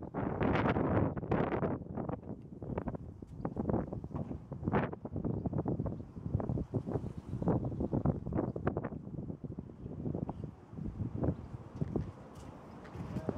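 Wind blows outdoors and rustles tall reeds.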